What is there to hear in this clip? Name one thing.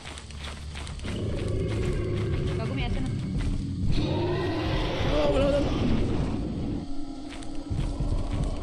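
A monster roars and growls loudly.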